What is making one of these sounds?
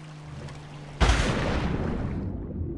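A body plunges into water with a loud splash.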